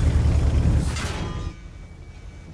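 A shell explodes with a loud rumbling boom.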